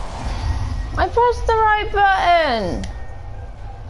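A young woman speaks into a microphone with animation.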